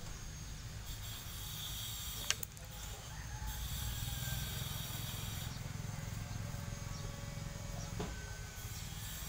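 Fingers press and crumble loose soil in a pot.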